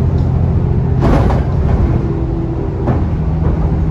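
A bus body rattles and clatters over bumps.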